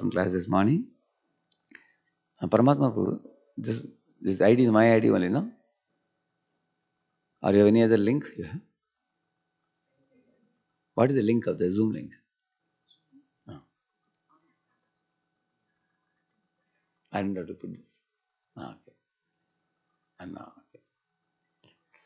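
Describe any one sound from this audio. A man speaks calmly into a microphone in short phrases with pauses.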